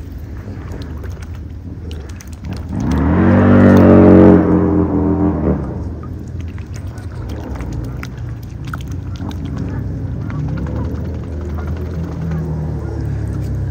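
A swan dabbles its bill in shallow water, with small splashes and slurps.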